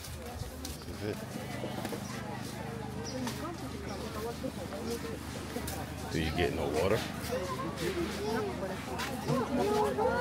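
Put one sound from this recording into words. A crowd of people murmurs in the distance.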